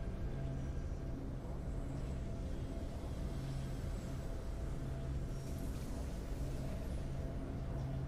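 Triumphant game music plays steadily.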